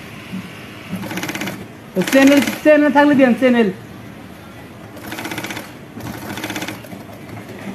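A sewing machine whirs in quick bursts of stitching.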